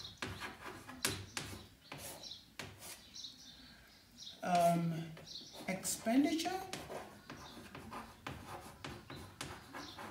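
Chalk scratches and taps on a chalkboard.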